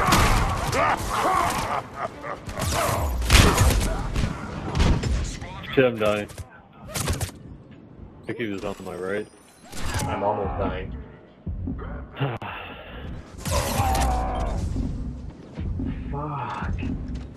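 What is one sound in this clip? Rapid gunfire and blasts crackle and boom.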